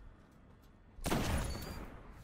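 A rifle fires a loud, booming shot.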